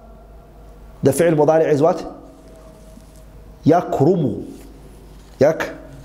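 A young man speaks calmly into a microphone in short phrases.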